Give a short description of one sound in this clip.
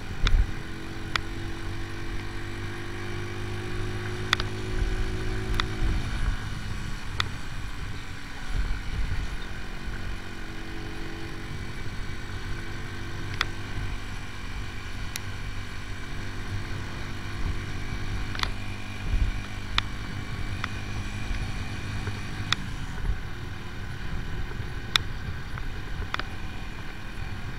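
Wind rumbles loudly against the rider.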